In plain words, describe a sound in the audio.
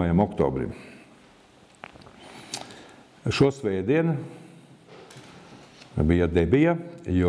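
An older man speaks calmly and slowly into a microphone, with long pauses.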